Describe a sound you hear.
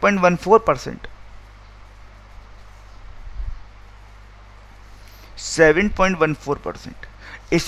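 A man speaks calmly into a close microphone, explaining.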